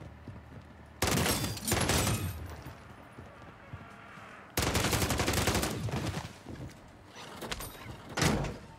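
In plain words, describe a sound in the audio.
Rapid gunfire bursts loudly in several bursts.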